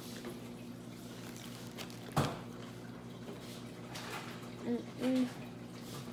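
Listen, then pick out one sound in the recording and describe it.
A young woman chews food close to the microphone.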